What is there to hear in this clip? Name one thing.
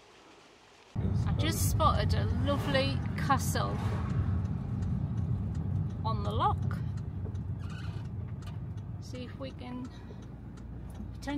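A car engine hums steadily with road noise from inside the car.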